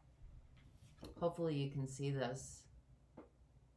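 A woman speaks close by, calmly and with warmth.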